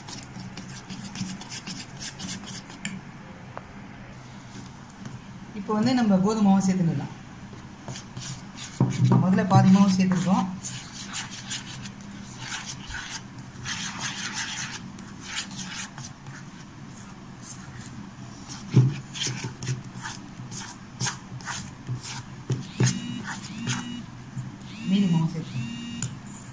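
A metal spoon scrapes and clinks against a bowl while mixing.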